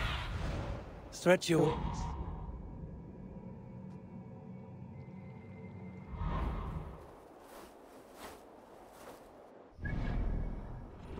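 Wind rushes past in gusts.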